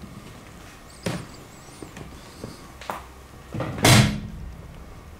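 A metal latch clunks.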